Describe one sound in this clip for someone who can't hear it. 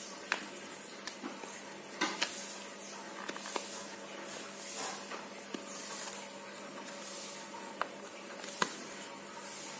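Fingers tap and click against a phone's plastic case.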